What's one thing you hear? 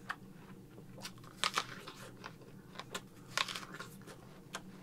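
A man crunches and chews a crisp apple close by.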